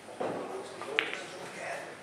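A cue stick strikes a ball with a sharp click.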